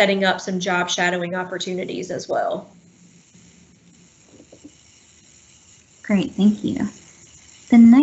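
A woman speaks calmly and close to the microphone, pausing between phrases.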